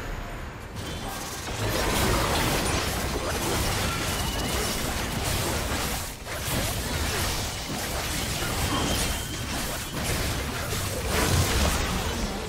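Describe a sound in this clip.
Magical spell blasts and combat effects from a video game crackle and boom rapidly.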